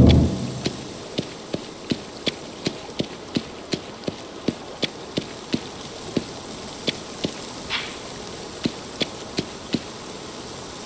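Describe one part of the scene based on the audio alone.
Footsteps tap at an even walking pace.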